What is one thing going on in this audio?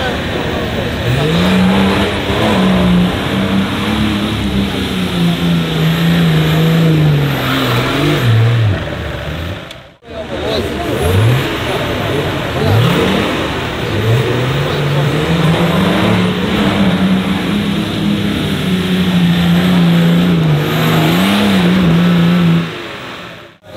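An off-road vehicle's engine revs hard, rising and falling as it climbs.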